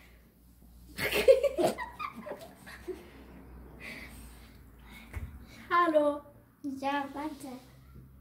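A young girl speaks and laughs excitedly nearby.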